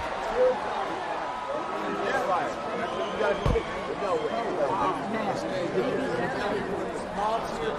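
A crowd of men murmurs and calls out in the background.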